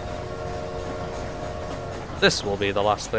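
A steam train whistle blows in the distance.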